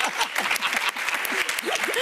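A young woman claps her hands.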